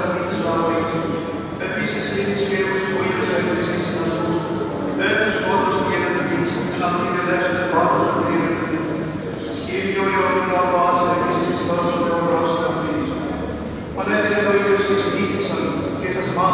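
A choir of men and women chants in harmony, echoing through a large resonant hall.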